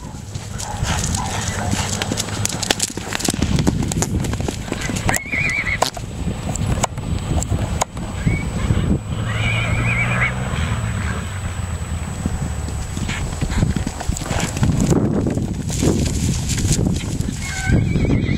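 A horse gallops, hooves thudding on dirt.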